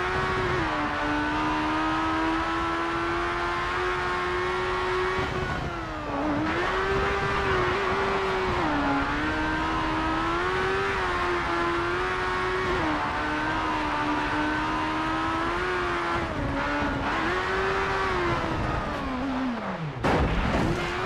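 A racing car engine roars at high revs, rising and falling as the gears shift.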